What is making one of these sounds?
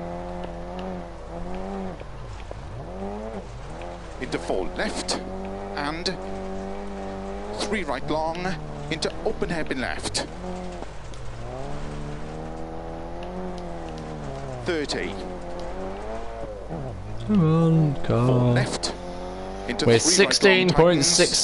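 A car engine roars and rises and falls in pitch as it revs through gear changes.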